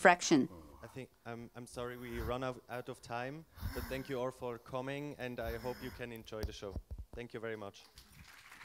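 A second man answers calmly through a microphone.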